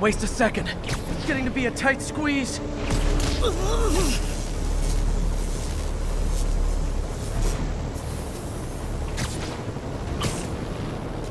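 Sharp whooshes snap as a figure swings through the air.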